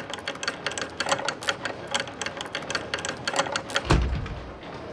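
A metal gate rattles and clanks as it rises.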